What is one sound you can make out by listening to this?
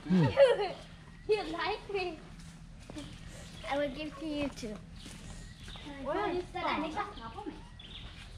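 A boy talks cheerfully close by.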